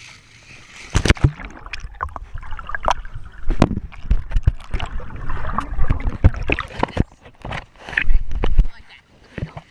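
Water splashes and gurgles close by.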